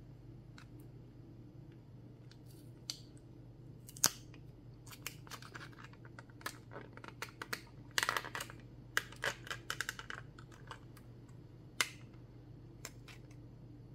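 A plastic case crinkles and clicks as it is handled and opened.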